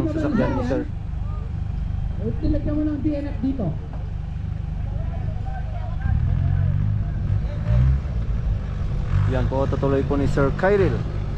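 An off-road truck engine rumbles and revs as it climbs a dirt slope.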